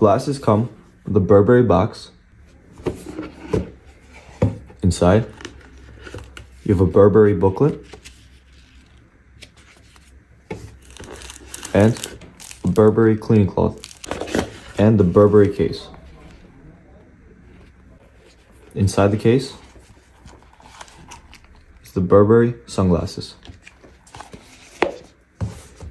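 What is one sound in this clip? Cardboard boxes scrape and rustle as they are handled.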